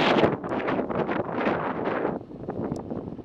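Wind rushes loudly past in gusts.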